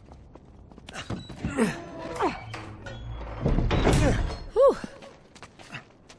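A heavy wooden door creaks shut.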